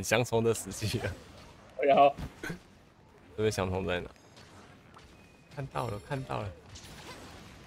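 A large sword strikes with loud clangs.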